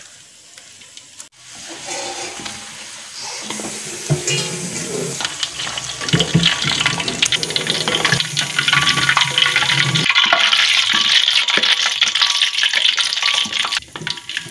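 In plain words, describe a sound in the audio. Hot oil sizzles and crackles as food fries.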